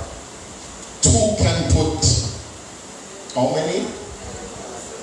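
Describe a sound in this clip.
A man preaches with animation into a microphone, heard through loudspeakers in an echoing hall.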